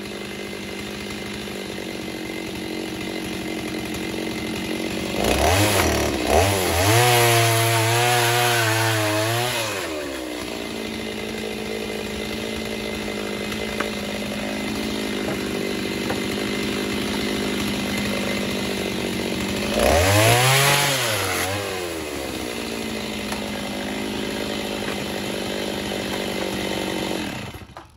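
An engine idles steadily close by.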